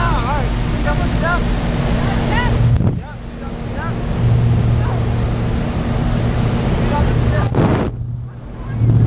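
Engine noise and wind roar steadily from an open aircraft door.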